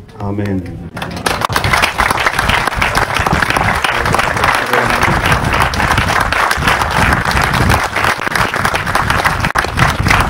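Hands clap in loud, steady applause.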